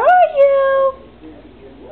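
A dog lets out a long, high howl nearby.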